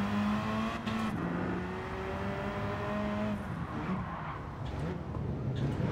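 A racing car engine drones steadily, shifting in pitch as it changes gear.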